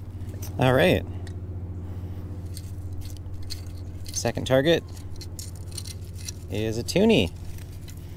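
Sand rattles and hisses through a metal sifting scoop.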